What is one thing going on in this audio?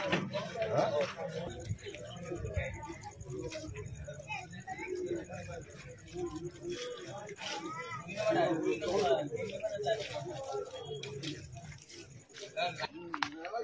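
A crowd of men talks and murmurs nearby outdoors.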